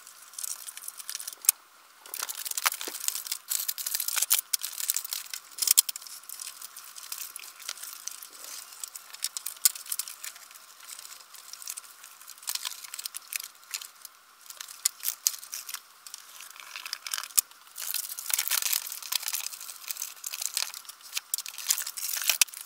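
Paper crinkles and rustles under hands.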